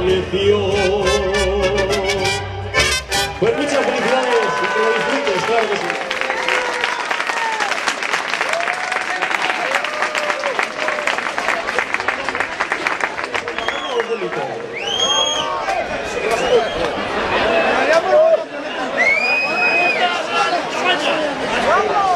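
A band plays trumpets and guitars outdoors.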